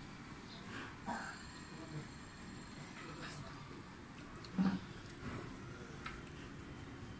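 Dishes clink softly on a table.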